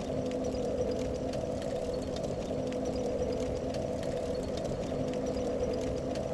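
A small fire crackles softly.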